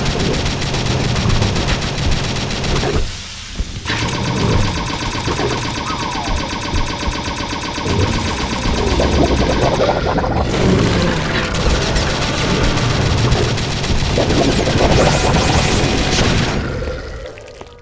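A rapid-fire gun shoots in a game.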